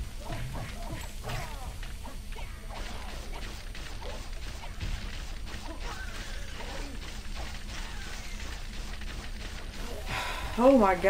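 Cartoonish punches and blows land in quick succession.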